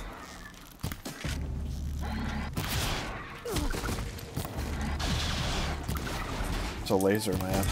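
A bowstring twangs as an arrow flies off.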